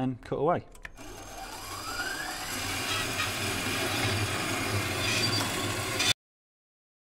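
A band saw cuts steadily through metal with a rising hum.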